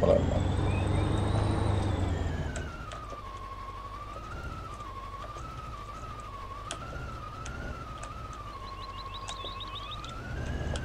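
A heavy tractor engine drones with a whining tone, easing off as it slows.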